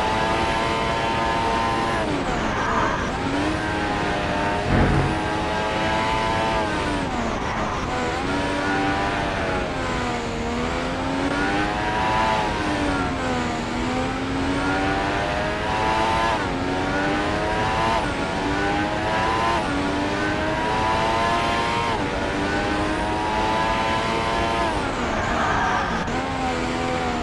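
A racing car engine whines loudly, rising and falling in pitch as the car speeds up and brakes.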